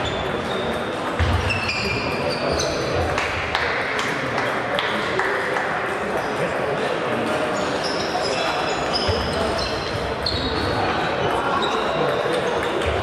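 Sports shoes squeak on a wooden floor.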